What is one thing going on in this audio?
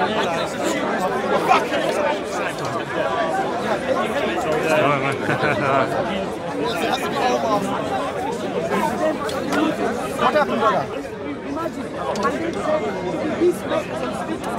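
A crowd of men talks loudly at once outdoors.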